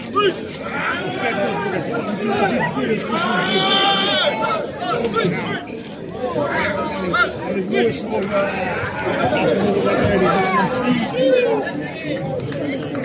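A crowd shouts and cheers loudly as a bull charges.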